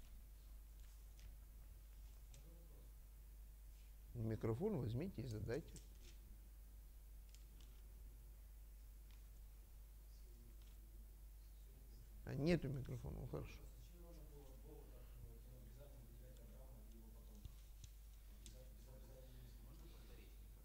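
A middle-aged man speaks quietly and haltingly, with short louder bursts.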